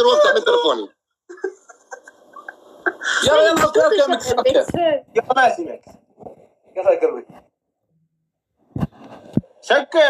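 A young woman talks and laughs through a phone microphone.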